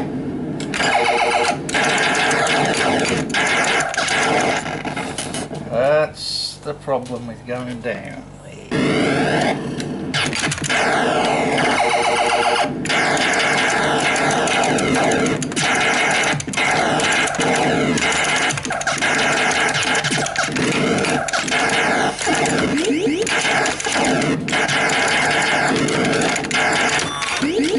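An arcade game plays loud electronic zaps, blasts and sweeping tones.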